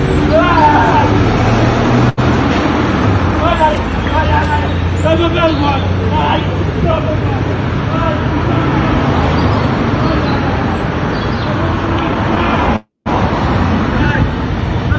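Several men shout outdoors, some way off.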